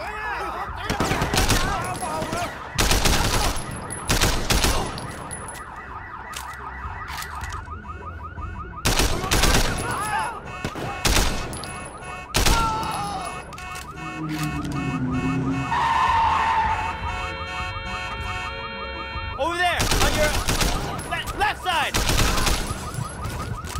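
A rifle fires loud bursts of shots close by.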